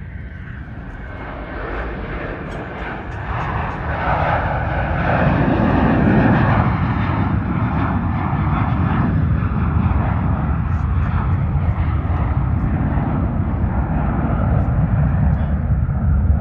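A jet airliner's engines roar loudly as it takes off and climbs away.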